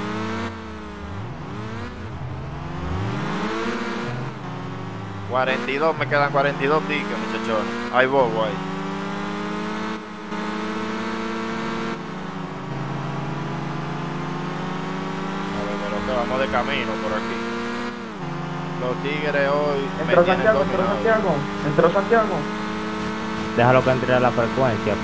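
A car engine hums and revs as it speeds up along a road.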